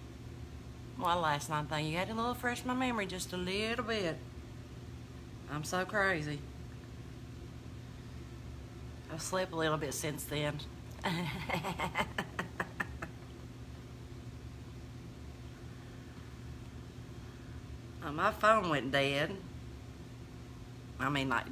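A middle-aged woman talks calmly and close by, in short bursts.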